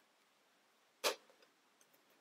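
Plastic toy parts click together.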